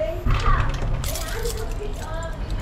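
Keys jingle on a ring.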